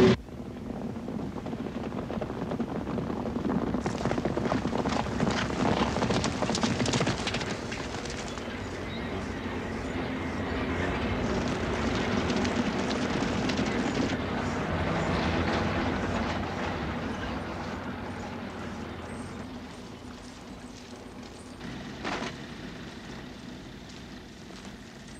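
Horses gallop in a herd, hooves pounding.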